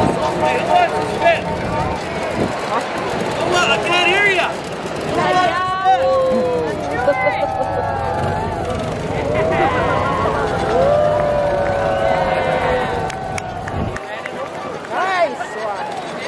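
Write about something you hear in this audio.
Small motors hum as little toy planes roll by.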